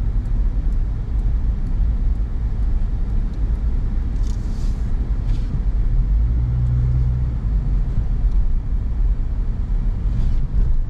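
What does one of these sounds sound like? A car engine hums steadily, heard from inside the cabin.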